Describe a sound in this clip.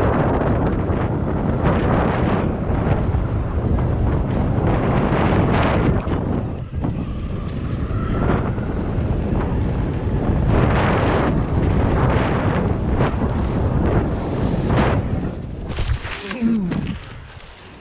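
Wind rushes loudly past during a fast ride.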